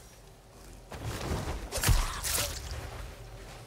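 A man grunts and scuffles in a close struggle.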